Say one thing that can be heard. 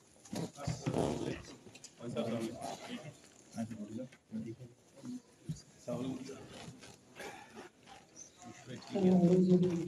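A man speaks with animation to a group in a room.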